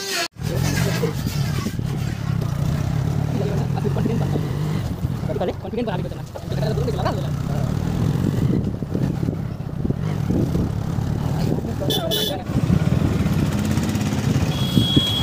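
Tyres rumble over a rough road.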